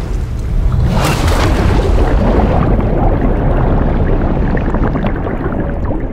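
Bubbles rush and gurgle underwater.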